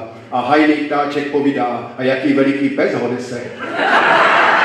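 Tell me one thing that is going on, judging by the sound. An elderly man speaks with animation into a microphone in a large hall.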